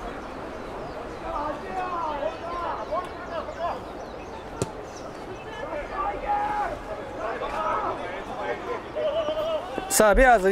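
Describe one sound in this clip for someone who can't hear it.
Players shout across an open field outdoors.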